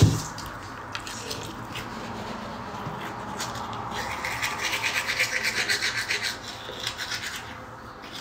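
A toothbrush scrubs rapidly against teeth.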